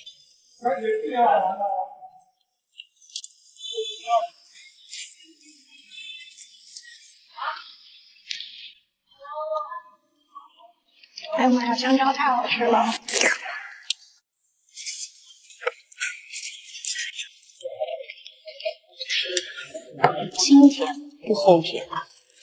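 A young woman speaks cheerfully close to a microphone.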